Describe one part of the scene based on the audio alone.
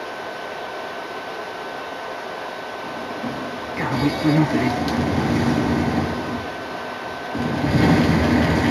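Video game music and effects play from a television speaker in a room.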